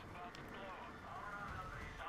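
Flames roar in a burst.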